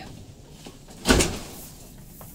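A vehicle's tipping bed bangs loudly.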